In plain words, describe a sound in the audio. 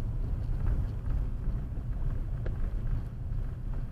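A bus passes close by on the road.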